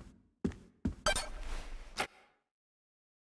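A game chime sounds in a burst of bright effects.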